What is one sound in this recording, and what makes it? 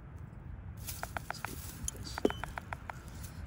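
A young bird chirps in short, repeated calls.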